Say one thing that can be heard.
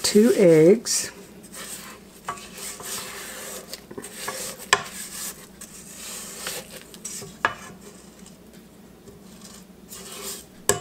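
A spatula scrapes against a metal mixing bowl.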